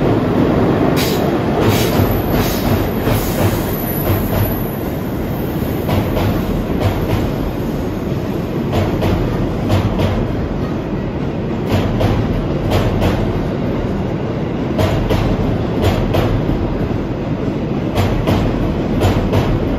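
Train wheels clatter rhythmically over rail joints.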